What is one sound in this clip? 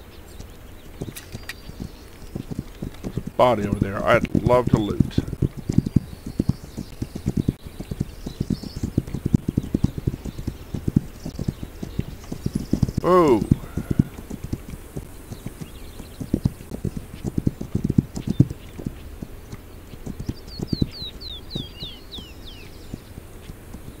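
A horse's hooves thud at a gallop over grass and earth.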